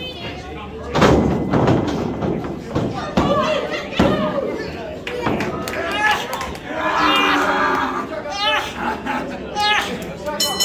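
Bodies slam onto a wrestling ring mat with loud thuds.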